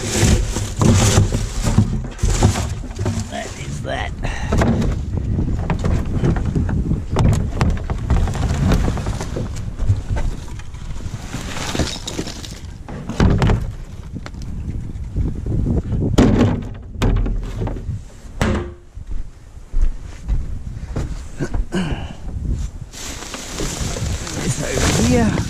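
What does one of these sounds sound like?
Plastic bags rustle and crinkle as gloved hands rummage through rubbish.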